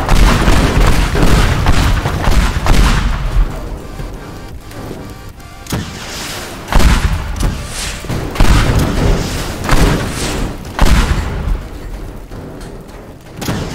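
Debris crashes and clatters down.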